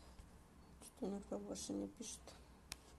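A young woman says a few words quietly, close by.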